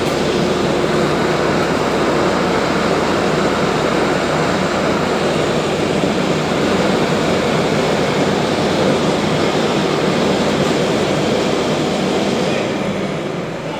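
A heavy road-paving machine's engine rumbles loudly nearby.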